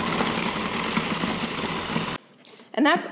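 A food processor whirs loudly.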